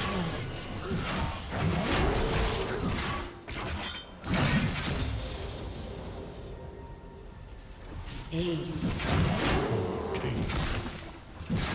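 Video game spell effects crackle and burst during a fight.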